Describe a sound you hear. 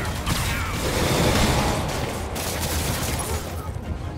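Glass shatters with a heavy crash.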